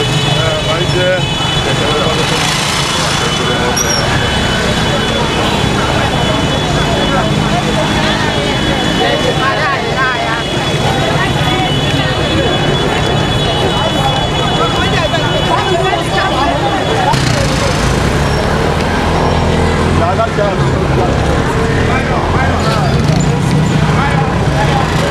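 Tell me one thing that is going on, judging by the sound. A large crowd of men and women sings together outdoors.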